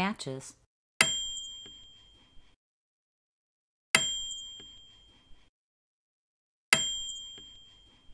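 A bright electronic chime rings out and slowly fades.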